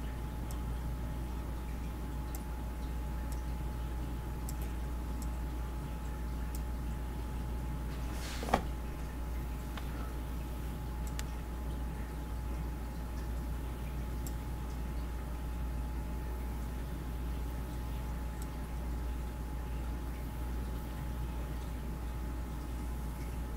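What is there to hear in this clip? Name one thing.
Soft electronic ticks and chimes sound as letters are picked in a puzzle game.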